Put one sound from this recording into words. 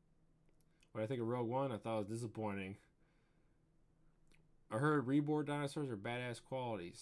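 A man talks casually and close into a microphone, in short bursts.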